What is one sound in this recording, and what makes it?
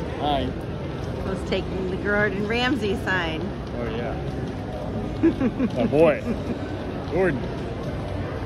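A middle-aged man talks cheerfully close by.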